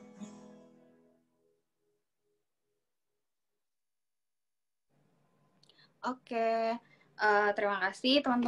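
A woman sings slowly through an online call.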